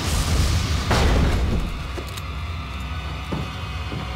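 Boots thud on wooden boards.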